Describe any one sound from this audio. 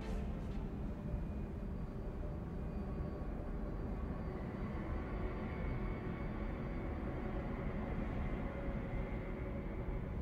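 A heavy tank engine rumbles steadily.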